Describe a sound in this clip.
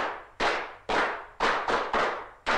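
A horse's hooves clop on cobblestones as it pulls a carriage.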